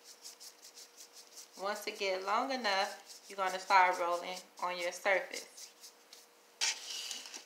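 Rubber gloves rustle on hands.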